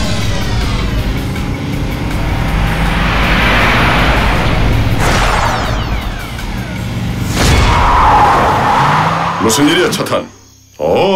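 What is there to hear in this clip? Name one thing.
A loud whoosh swells and fades.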